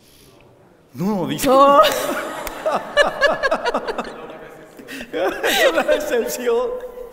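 A woman laughs heartily.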